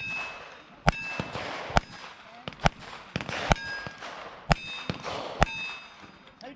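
Gunshots crack one after another outdoors.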